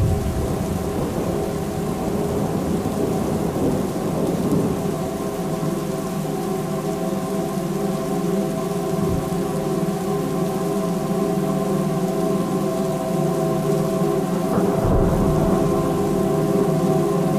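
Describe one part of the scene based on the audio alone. Electronic music drones with steady layered tones, heard over loudspeakers in a room.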